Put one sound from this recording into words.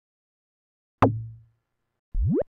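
A deep electronic thump sounds.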